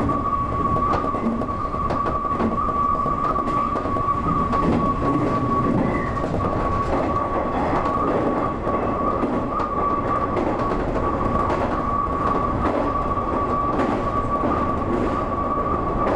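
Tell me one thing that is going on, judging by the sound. An electric motor whines at a steady pitch.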